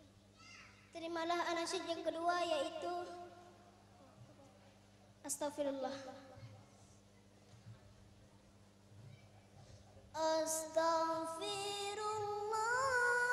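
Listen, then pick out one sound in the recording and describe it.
A group of girls sings together through a microphone outdoors.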